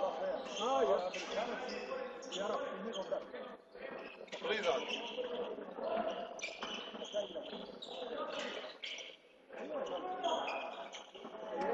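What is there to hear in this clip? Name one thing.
Sneakers squeak on a hard court floor in a large echoing hall.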